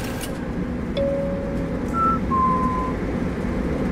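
An electronic device beeps briefly.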